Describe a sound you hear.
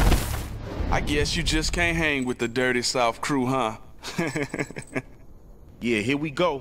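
A young man talks boastfully, close up.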